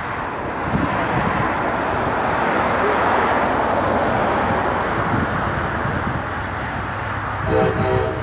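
A train approaches in the distance with a low, building rumble.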